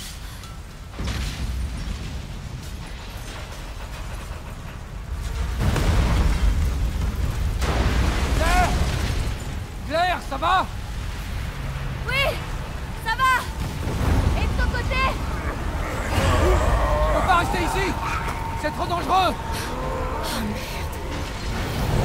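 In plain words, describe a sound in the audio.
Fire roars.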